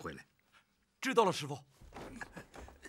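A young man answers briefly and calmly.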